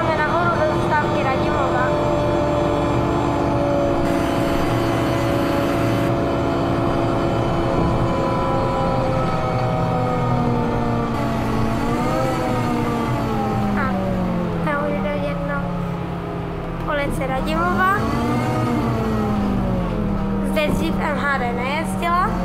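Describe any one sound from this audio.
A bus motor hums and whines, its pitch rising and falling as the bus speeds up and slows down.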